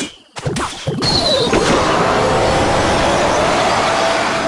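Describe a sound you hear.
A magic spell lands with a crackling hiss.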